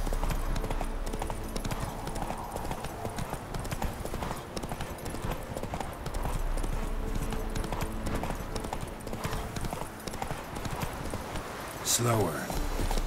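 Horse hooves pound steadily at a gallop.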